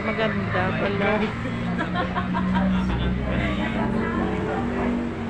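Several men and women talk casually nearby, their voices overlapping.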